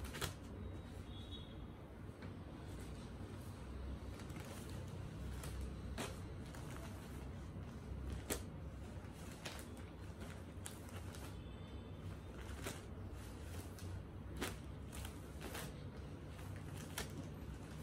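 Cloth rustles and slaps softly as a stack of fabric is handled and laid down.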